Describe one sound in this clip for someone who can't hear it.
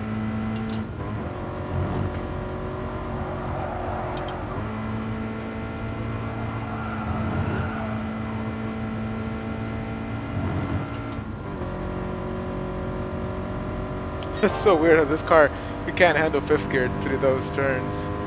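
A racing car engine drones steadily and shifts pitch through the gears.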